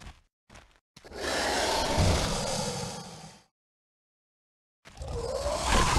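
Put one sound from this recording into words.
Large beasts growl and roar.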